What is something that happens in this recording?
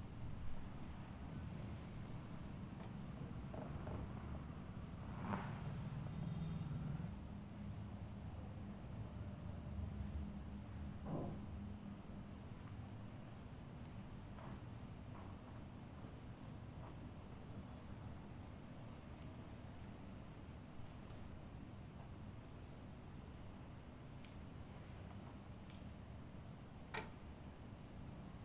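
Hands rub and press softly on bare skin.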